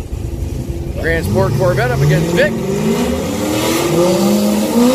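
A car engine revs up repeatedly.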